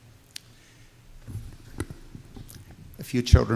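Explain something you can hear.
An older man speaks calmly through a microphone in an echoing hall.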